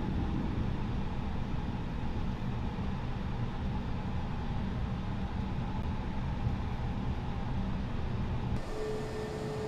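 A jet engine rumbles low and steady inside a cockpit.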